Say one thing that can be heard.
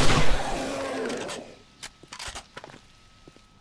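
A rifle is reloaded with metallic clicks and clacks.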